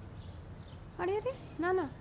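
A woman says a few words in a pleading voice, close by.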